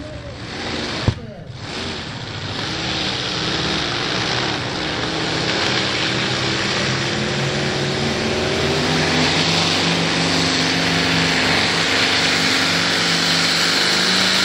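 A powerful engine roars loudly and steadily, growing louder as it comes closer.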